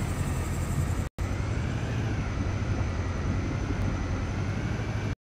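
An armoured vehicle's engine rumbles steadily as it drives along.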